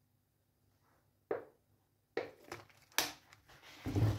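Liquid pours and splashes into a pan.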